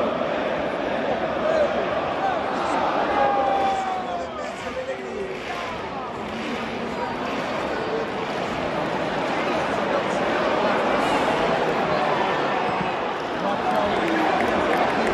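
A large stadium crowd chants and sings loudly throughout.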